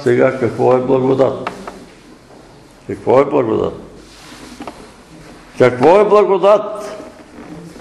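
An elderly man speaks slowly and earnestly in bursts, in a room with some echo.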